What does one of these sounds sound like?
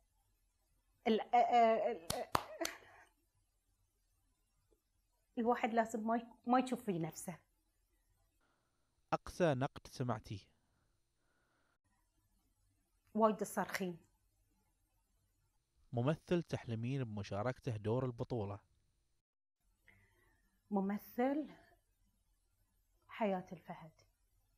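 A middle-aged woman speaks calmly and warmly, close to a microphone, in short bursts with pauses.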